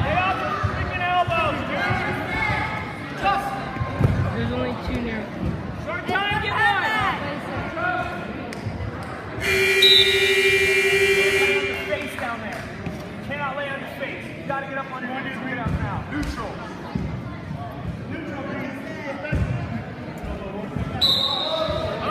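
A crowd of young spectators shouts and cheers in an echoing gym.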